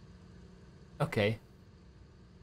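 A man speaks a short word into a microphone, close up.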